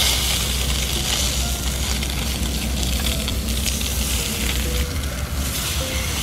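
Chopsticks scrape against a pan.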